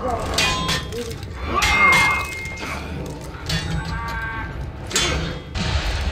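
Steel blades clash and ring in sharp metallic hits.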